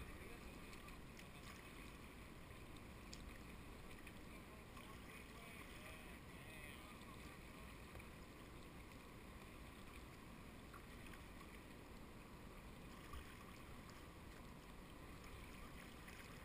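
A paddle dips and splashes in water.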